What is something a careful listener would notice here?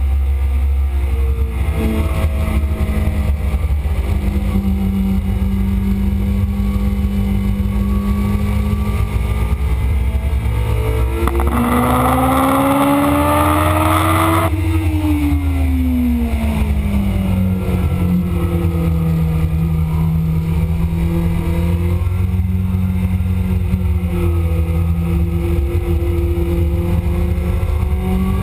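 A motorcycle engine roars loudly, revving up to a high whine on the straight and dropping into the turns.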